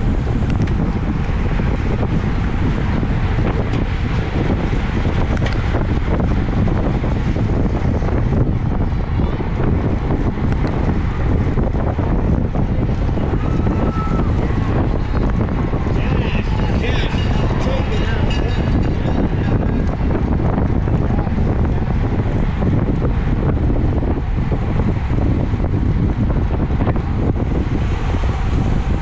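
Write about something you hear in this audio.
Wind roars loudly and steadily past a close microphone.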